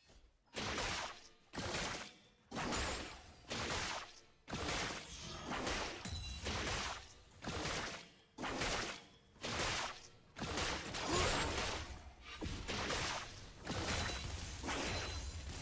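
Game sound effects of fighting clash and zap.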